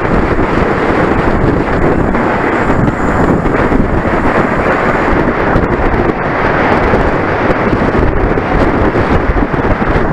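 Wind rushes loudly past a moving bicycle.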